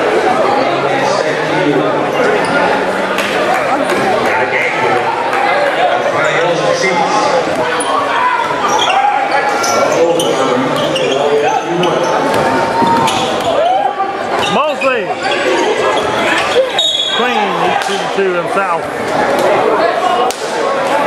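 Many men talk and shout across a large echoing gym.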